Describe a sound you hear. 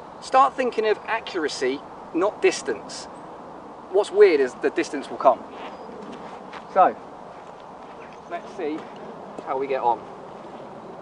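A young man talks calmly outdoors.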